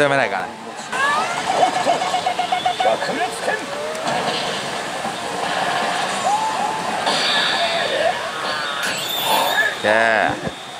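A slot machine plays loud electronic music and sound effects.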